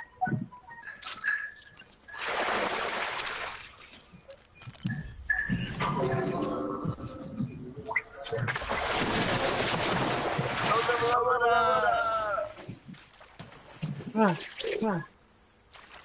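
Footsteps run across wooden boards and rock.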